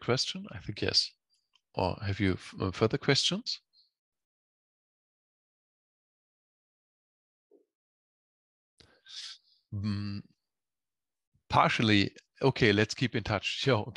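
A man speaks calmly through an online call, pausing between phrases.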